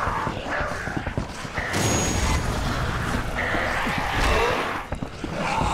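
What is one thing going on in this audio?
A zombie snarls and groans.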